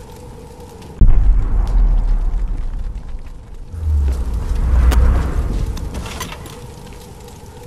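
A torch flares up with a loud whoosh and roars.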